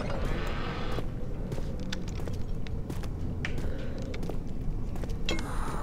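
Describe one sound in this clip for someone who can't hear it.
Footsteps thud and creak on wooden stairs.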